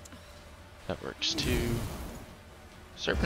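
A magical shimmering whoosh sounds as a card is played.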